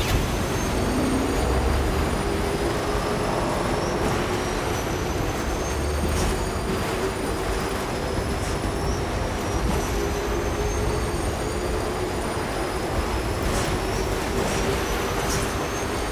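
Wind blows strongly across open ground.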